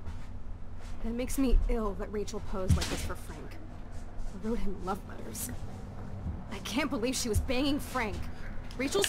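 A young woman speaks bitterly and with anger.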